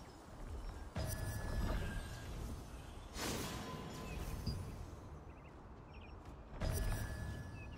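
A bright magical chime rings out.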